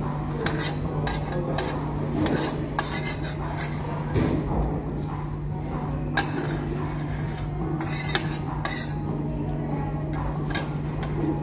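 A fork and spoon clink and scrape against a ceramic dish.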